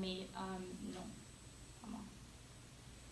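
A young woman speaks briefly and calmly nearby.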